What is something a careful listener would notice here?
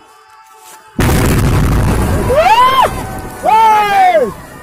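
A large firecracker explodes with a loud, sudden blast.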